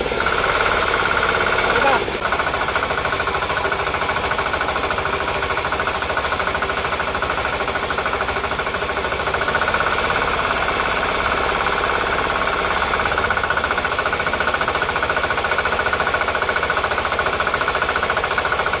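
Water gushes from a pipe and splashes onto the ground.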